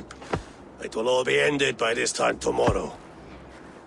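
An elderly man speaks in a low, calm voice.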